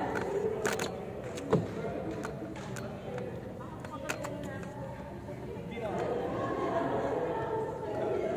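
Young women chatter and call out in a large echoing hall.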